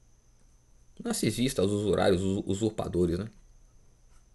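A man speaks briefly and expressively, close to the microphone.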